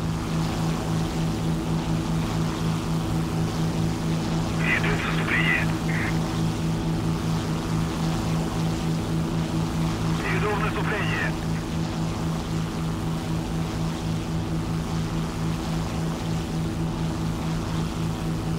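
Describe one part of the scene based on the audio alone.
Wind rushes past the aircraft.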